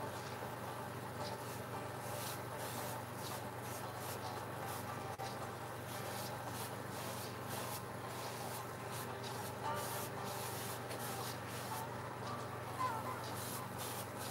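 An oil pastel scratches softly across a canvas in short strokes.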